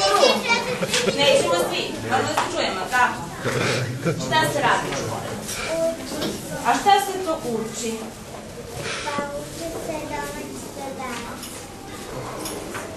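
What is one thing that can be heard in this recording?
Young children call out eagerly and chatter in a crowded room.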